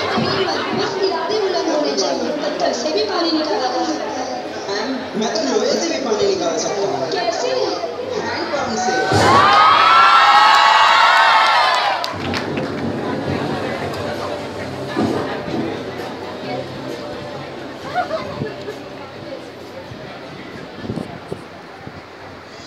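A large audience chatters and murmurs in an echoing hall.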